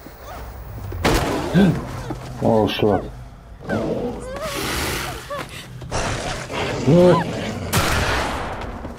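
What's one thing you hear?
A body thuds heavily onto the ground.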